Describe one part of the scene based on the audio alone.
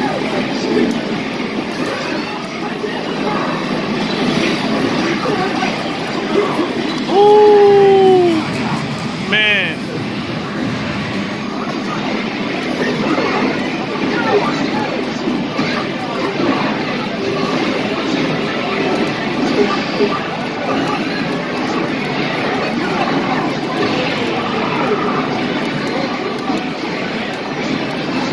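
An arcade fighting game plays loud punches, shouts and music through its speakers.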